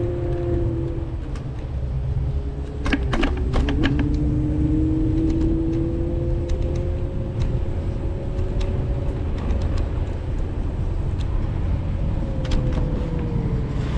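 Tyres rumble over the road.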